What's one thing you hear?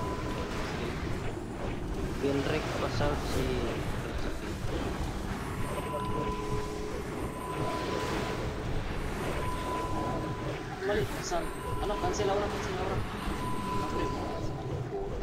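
Magic spells whoosh and crackle amid a noisy battle.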